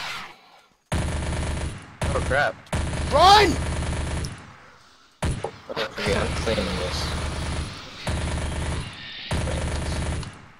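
A rapid-fire gun shoots in long, rattling bursts.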